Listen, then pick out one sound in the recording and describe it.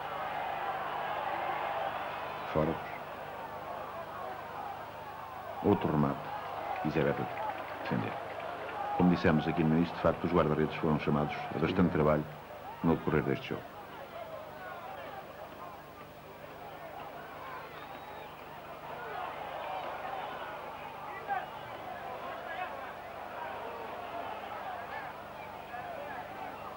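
A large stadium crowd murmurs and roars steadily outdoors.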